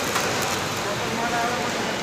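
Dry snack pours and rustles into a metal hopper.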